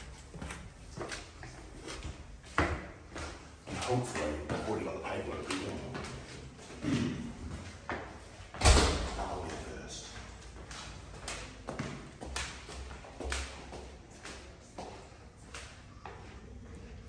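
Footsteps climb stairs with echoing thuds.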